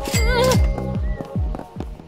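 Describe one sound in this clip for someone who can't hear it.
A camel's hooves clop on pavement.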